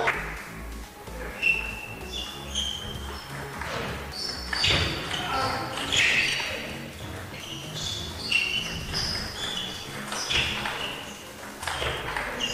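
A table tennis ball clicks back and forth between paddles and table.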